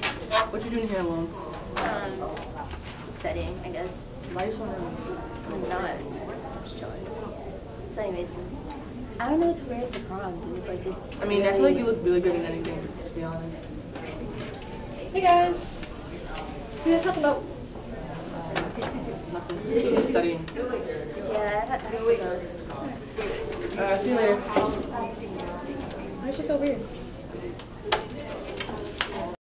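Teenage girls talk and chat with each other nearby.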